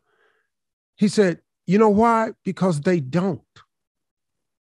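A man speaks with animation into a close microphone over an online call.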